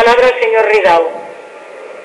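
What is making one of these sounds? A man speaks into a microphone, his voice echoing in a large hall.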